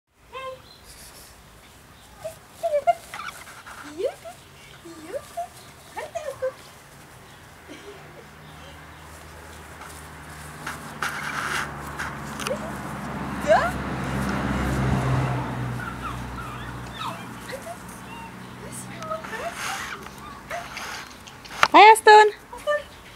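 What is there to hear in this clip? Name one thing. A puppy yips and whines in short high bursts.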